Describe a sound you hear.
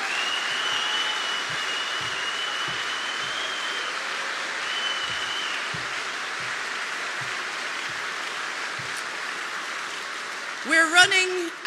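A large crowd applauds in a big hall.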